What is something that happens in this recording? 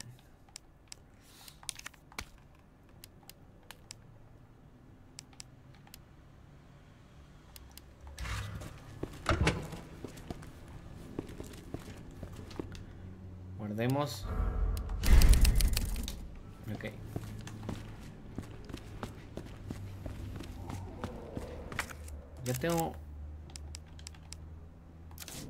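Menu selections click softly in a video game.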